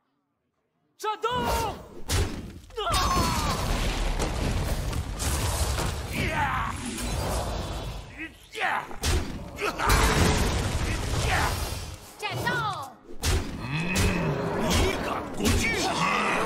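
Game sound effects of magic spells and impacts crash and chime.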